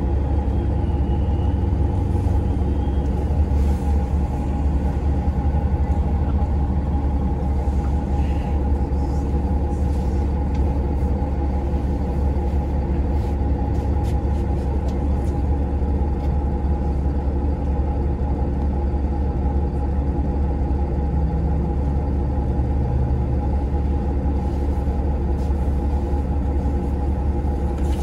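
A bus engine idles with a steady low rumble and hum, heard from inside.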